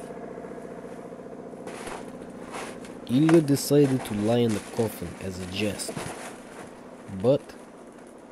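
A cardboard box rustles and thumps as someone climbs into it.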